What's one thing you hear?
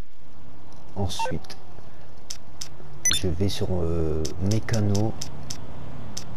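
A phone menu gives short clicks as it is scrolled through.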